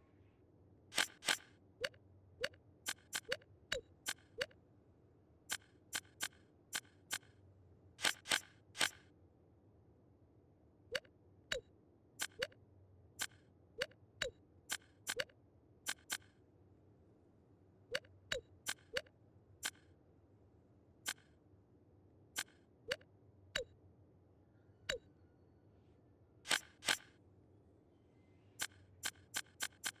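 Short menu clicks and blips sound over and over.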